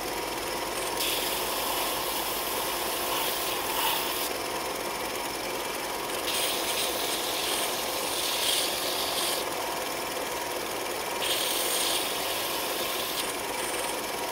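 A small piece is ground against a belt sander in hissing bursts.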